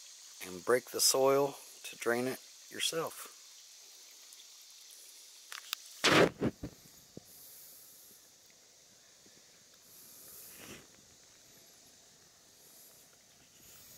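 Water trickles gently over mud.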